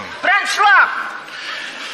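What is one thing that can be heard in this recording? A middle-aged woman speaks with animation through a stage microphone.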